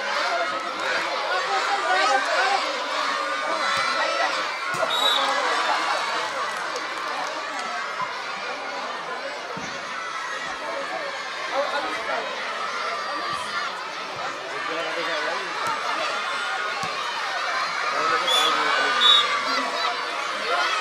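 A crowd of children cheers and shouts outdoors.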